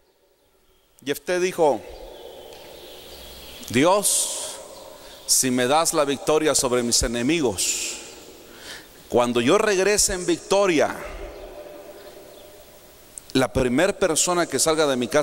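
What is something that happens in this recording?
A man speaks with animation through a microphone and loudspeakers, in bursts with pauses.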